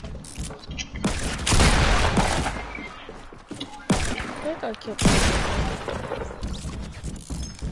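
Gunshots ring out in loud, rapid bursts.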